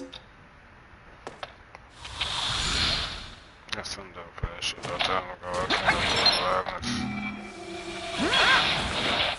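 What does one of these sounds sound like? An energy beam whooshes upward.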